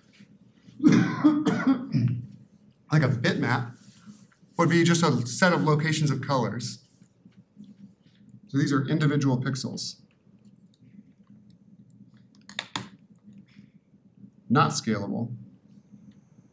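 A man lectures through a microphone, speaking in short bursts with pauses.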